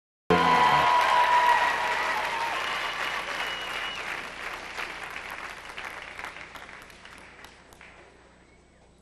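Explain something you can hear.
A large crowd applauds and cheers in a big echoing hall, then fades away.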